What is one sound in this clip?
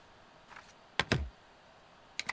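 A stamp thumps down on paper.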